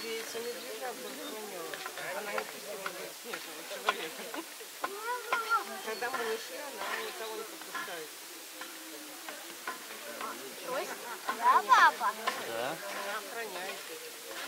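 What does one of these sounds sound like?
Polar bear cubs whine and squeal in high, wavering cries.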